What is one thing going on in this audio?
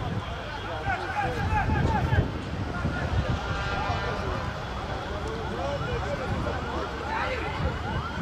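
Young men call out to each other across an open field.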